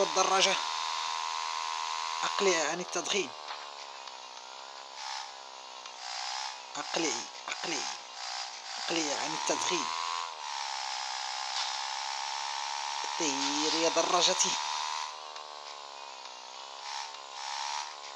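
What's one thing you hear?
A motorcycle engine drones steadily, rising and falling in pitch.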